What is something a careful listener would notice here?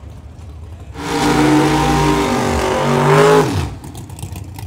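A second drag racing engine roars loudly during a burnout.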